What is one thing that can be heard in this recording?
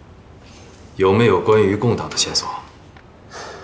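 A middle-aged man speaks in a low, measured voice.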